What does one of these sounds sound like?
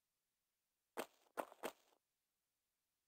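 Quick footsteps run across a stone floor.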